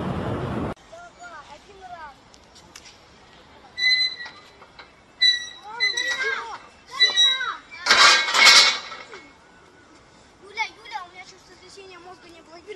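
Young girls shout and squeal up close.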